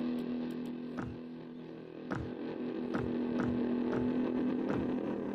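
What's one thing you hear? Footsteps thud at an even walking pace.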